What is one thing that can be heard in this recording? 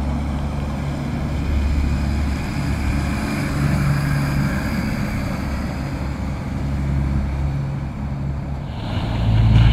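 A heavy truck engine rumbles as it drives past.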